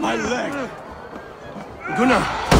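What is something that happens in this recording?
A man cries out in pain.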